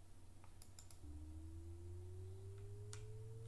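A steady electronic tone slowly rises in pitch.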